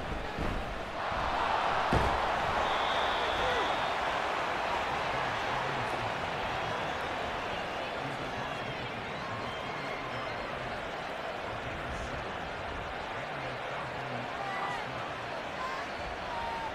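A stadium crowd roars and cheers loudly, then settles into a steady murmur.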